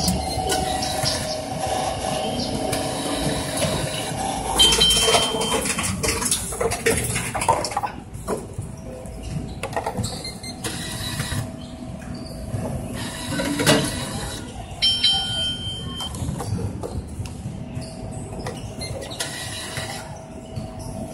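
A machine whirs as it turns a bottle.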